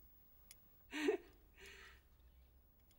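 A young woman laughs briefly nearby.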